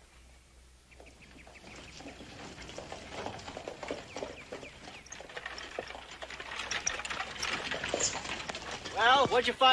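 A buggy's wheels rattle on a dirt road.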